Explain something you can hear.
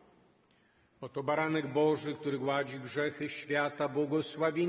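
A man sings or chants loudly through a microphone.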